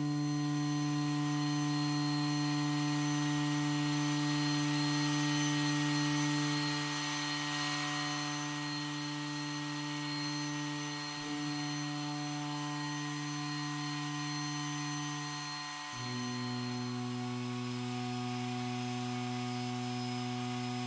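A synthesizer holds a steady, buzzing chord that changes to a new chord partway through.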